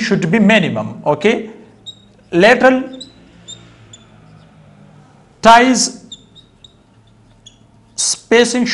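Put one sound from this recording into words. A marker squeaks on a whiteboard.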